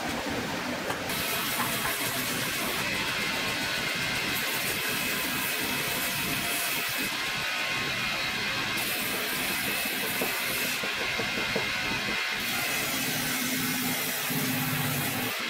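A spinning grinding wheel whirs and scrapes against a boot sole.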